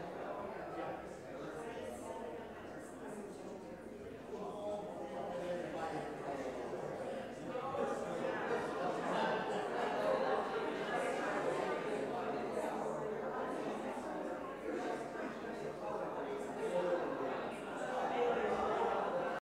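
Organ music plays, echoing through a large hall.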